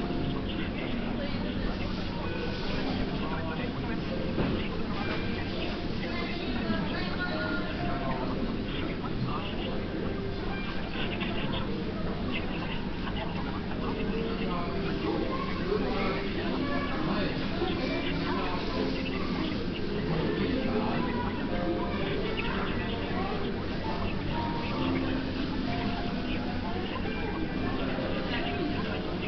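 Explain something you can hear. People chatter in the background of a busy room.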